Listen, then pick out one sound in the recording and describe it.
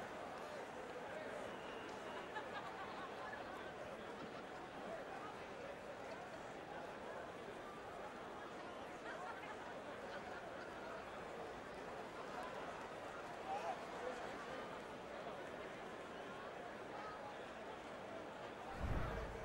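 A large crowd cheers loudly in an arena.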